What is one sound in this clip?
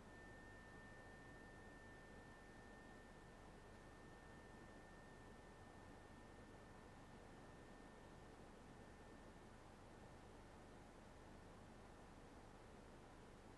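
Tuning forks ring with a clear, steady high tone that slowly fades.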